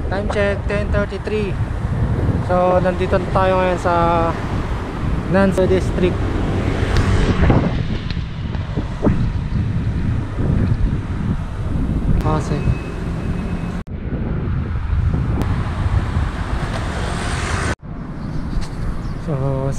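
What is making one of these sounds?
Wind rushes over a microphone.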